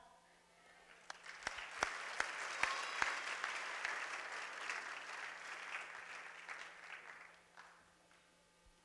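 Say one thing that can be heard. People applaud loudly.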